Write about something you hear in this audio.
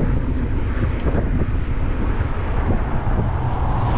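A motor home passes close by.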